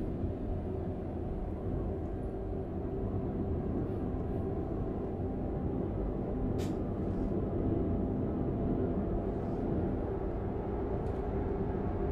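A truck engine hums low and steady from inside the cab.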